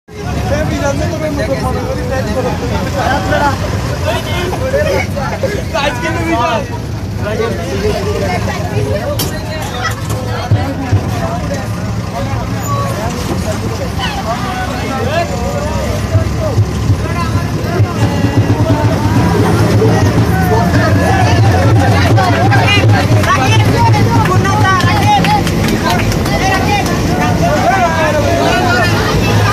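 Young people chatter and shout together nearby.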